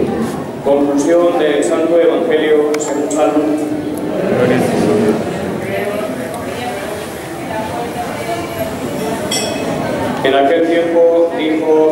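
An elderly man speaks calmly through a loudspeaker in a large echoing hall.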